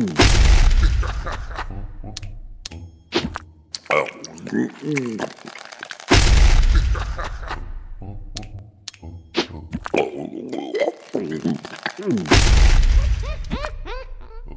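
Loud rushing bursts of a game's attack effects come every few seconds.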